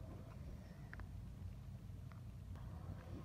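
A small plastic part clicks softly into place.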